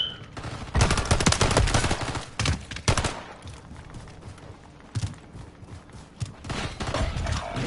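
A young man speaks excitedly into a headset microphone.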